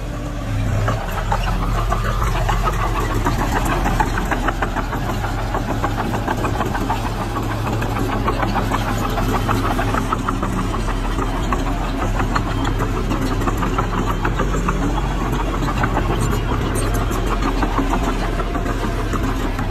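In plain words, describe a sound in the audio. A small bulldozer's diesel engine rumbles steadily.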